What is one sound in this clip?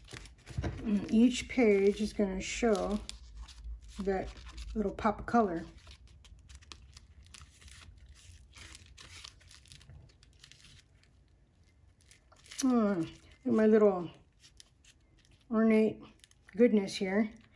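Paper pages rustle and flip as they are turned by hand.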